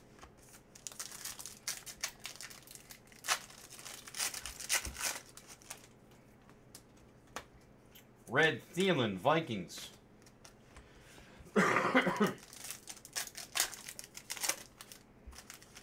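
A foil card wrapper crinkles and tears.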